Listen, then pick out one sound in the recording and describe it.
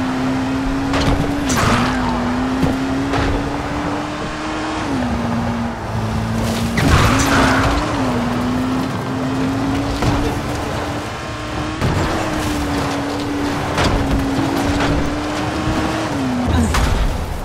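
Loud thumps and crashes as the car strikes objects on the road.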